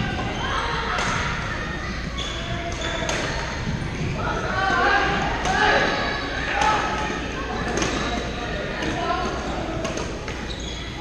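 Paddles strike balls with sharp pops in a large echoing gym.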